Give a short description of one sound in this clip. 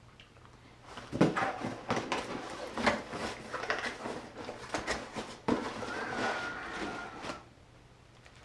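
A cardboard box rustles and scrapes as it is opened.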